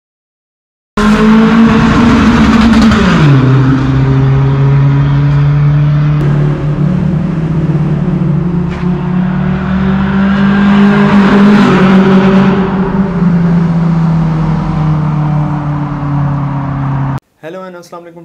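A car engine drones loudly and its exhaust rumbles as it drives.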